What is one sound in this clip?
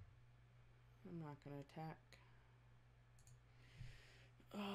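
A young woman speaks briefly into a microphone, close by.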